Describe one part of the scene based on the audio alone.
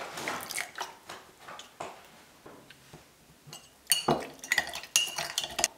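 A metal spoon clinks against a ceramic mug while stirring.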